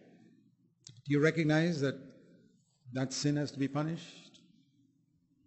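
An elderly man speaks slowly and deliberately through a microphone.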